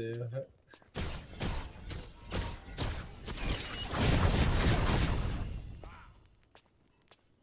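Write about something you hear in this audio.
Game sound effects of spells and hits ring out.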